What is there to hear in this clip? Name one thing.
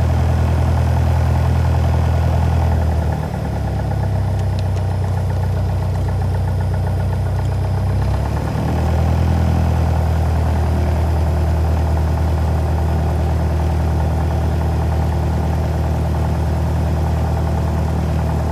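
A small propeller plane's engine drones loudly and steadily, changing pitch as it speeds up.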